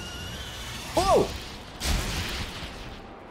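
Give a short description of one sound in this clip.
A pickaxe strikes ice with sharp cracks.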